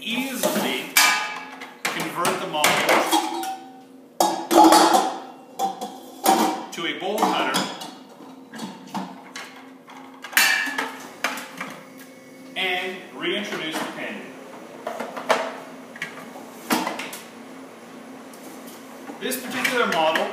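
Metal parts clank and click as they are fitted together.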